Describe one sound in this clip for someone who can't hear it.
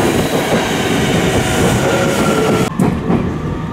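An electric commuter train rolls into a station.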